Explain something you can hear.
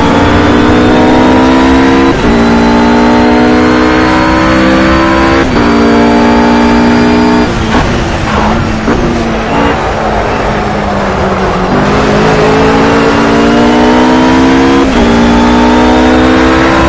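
A GT3 racing car engine screams at full throttle, shifting up through the gears.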